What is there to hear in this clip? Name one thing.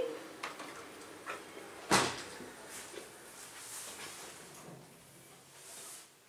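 Sliding metal lift doors rumble shut with a thud.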